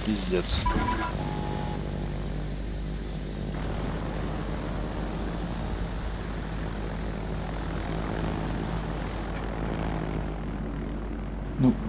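Propeller aircraft engines drone steadily.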